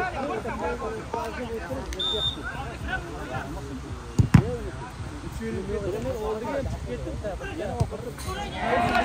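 Several men shout and call out to each other outdoors.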